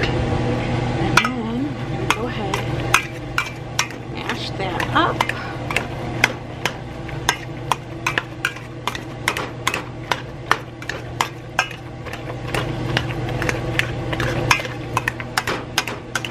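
A metal masher squelches through soft food in a pot.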